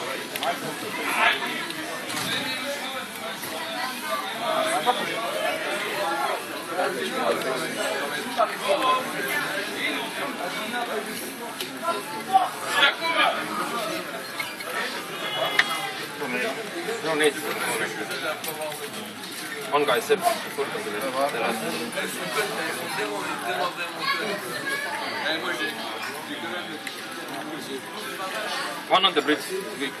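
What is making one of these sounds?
A crowd of young men and women chatter all around in a busy room.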